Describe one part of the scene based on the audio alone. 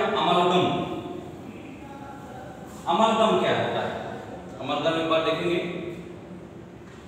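A middle-aged man speaks loudly and with animation, as if explaining to a class.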